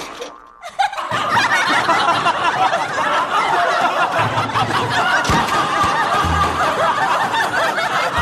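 A group of teenage boys and girls laugh loudly.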